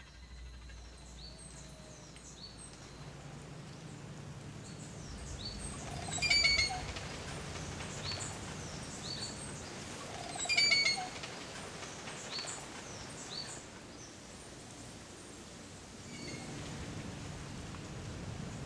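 Birds chirp and call in quick, high bursts.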